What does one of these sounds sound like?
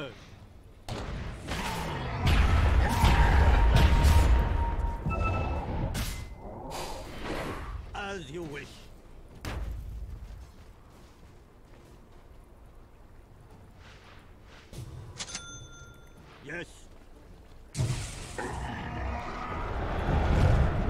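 Game combat effects clash and thud loudly.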